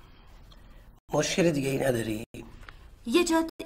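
A woman speaks with feeling, close by.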